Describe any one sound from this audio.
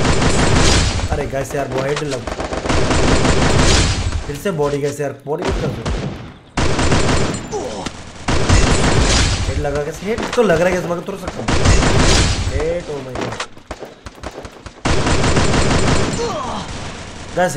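Gunfire rattles in bursts from a game.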